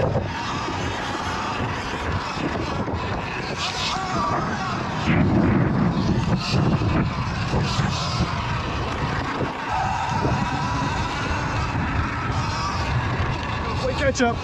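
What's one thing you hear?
An electric dirt bike hums along a bumpy dirt track.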